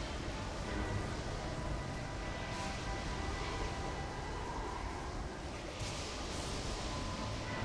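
A magical energy orb hums and crackles steadily.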